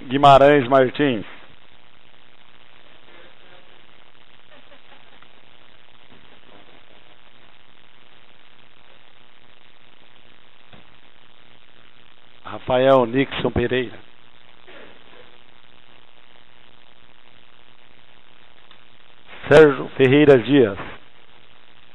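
A man speaks briefly over a microphone in a large hall.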